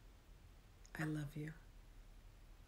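A middle-aged woman speaks softly and slowly, close to the microphone, as in a guided meditation.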